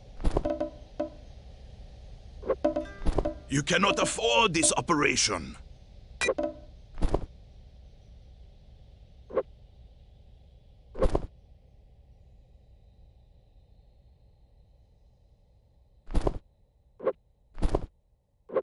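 Short game sound effects clunk and click as items are picked up and put down.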